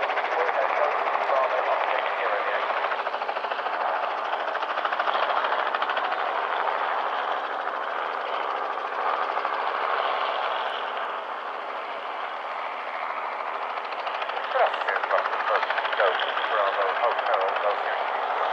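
A small propeller plane's engines roar steadily as it speeds down a runway and climbs away.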